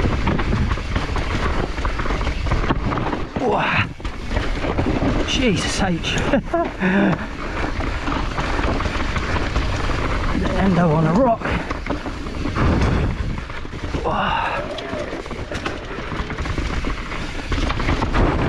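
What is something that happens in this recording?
Wind rushes loudly past at speed.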